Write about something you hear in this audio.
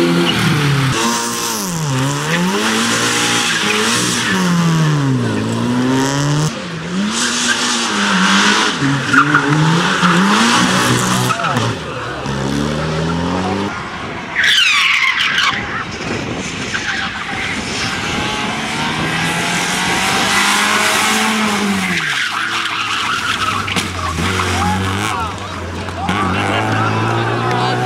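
A rally car engine revs hard up and down, close by.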